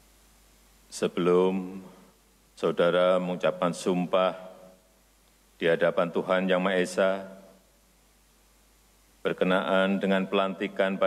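Men repeat words together through a microphone.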